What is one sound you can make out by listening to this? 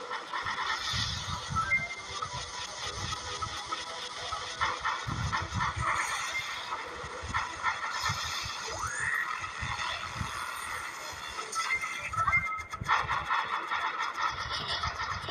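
Lasers fire in a rapid, steady stream of buzzing zaps.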